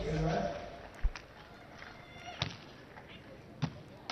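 A volleyball is struck with sharp slaps of hands.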